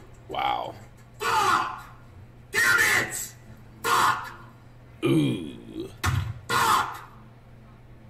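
A young man shouts loudly and excitedly in bursts into a close microphone.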